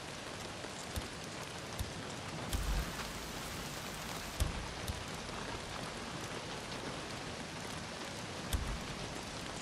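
Soft game menu clicks and thuds sound now and then.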